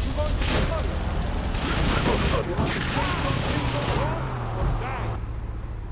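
A car engine revs as it drives past.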